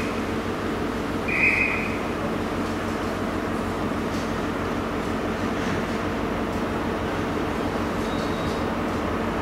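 A train engine idles with a steady low hum.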